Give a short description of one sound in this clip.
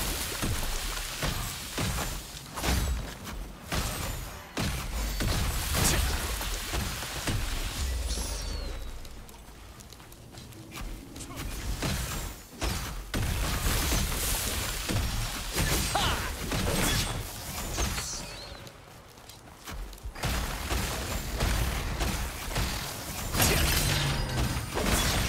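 Magic spells crackle and burst in quick, repeated blasts.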